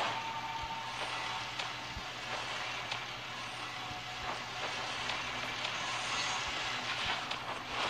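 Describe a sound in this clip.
Electric zaps crackle from a game.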